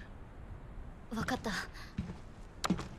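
A young woman answers briefly and softly.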